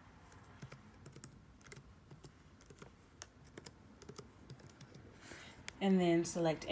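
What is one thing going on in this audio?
Keys on a laptop keyboard click softly as someone types.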